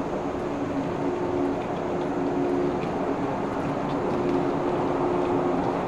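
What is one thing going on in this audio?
A train rolls past, with a steady humming rumble.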